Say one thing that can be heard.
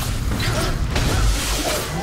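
A lightning bolt cracks down with a boom.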